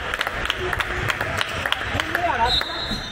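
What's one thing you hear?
A handball bounces on a wooden court floor in an echoing hall.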